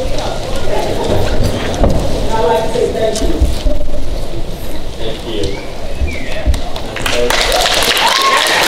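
A crowd of men and women chants and shouts loudly in a large echoing hall.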